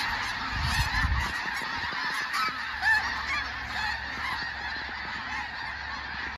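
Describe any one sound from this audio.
A large flock of snow geese honks and calls noisily overhead.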